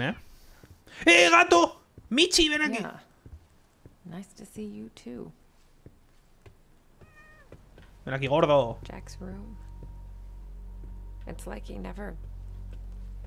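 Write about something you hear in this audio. A young woman speaks quietly and tensely.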